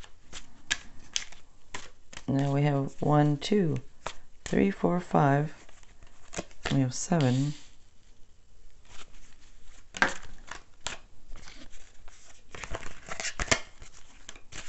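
Playing cards tap and slide onto a table.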